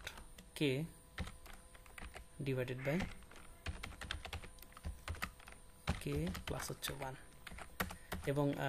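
Keys click on a keyboard in quick bursts.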